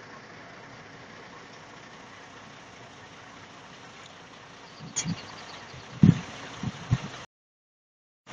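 A van engine hums as the van drives away down the road.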